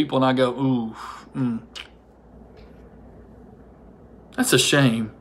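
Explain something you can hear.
A man speaks calmly and close to a microphone, with short pauses.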